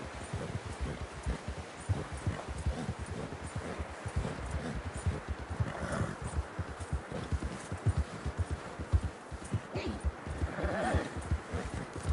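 Horse hooves thud quickly through deep snow.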